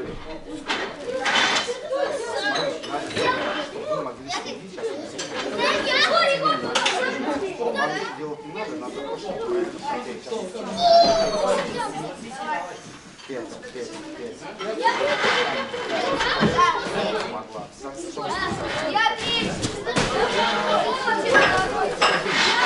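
Many young men chatter and talk nearby in a large echoing hall.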